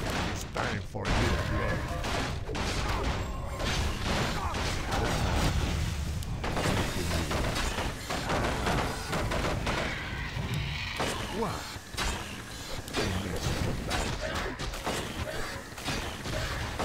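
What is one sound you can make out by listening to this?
Weapons clash and magic blasts burst in a busy battle.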